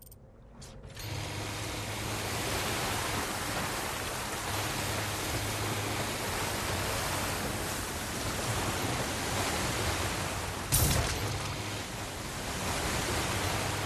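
Water splashes and rushes past a moving boat.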